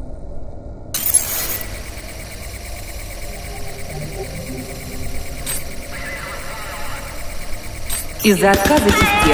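Electronic static crackles and hums.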